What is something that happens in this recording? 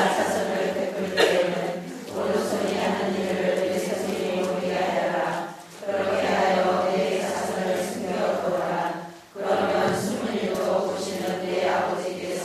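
A middle-aged man speaks calmly and steadily through a microphone in an echoing room.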